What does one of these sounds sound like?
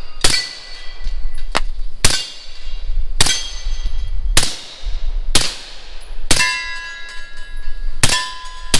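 A rifle fires loud shots outdoors, one at a time, each followed by a ringing echo.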